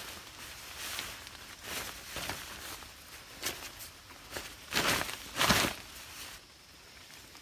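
Nylon fabric rustles close by.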